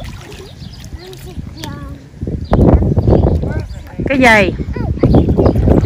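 A young child squeals and babbles close by.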